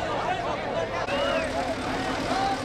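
A tractor engine rumbles close by.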